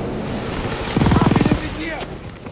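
A machine gun fires a rapid burst at close range.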